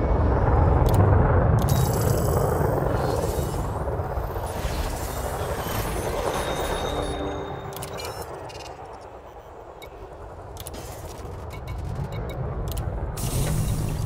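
Soft electronic clicks and beeps sound as menu options are chosen.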